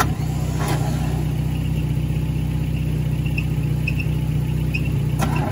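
An old car engine idles with a steady, low, throbbing rumble.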